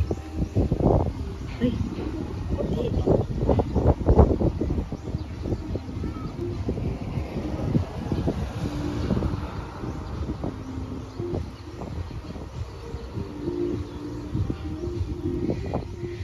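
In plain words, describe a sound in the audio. Wind gusts outdoors and buffets close by in strong bursts.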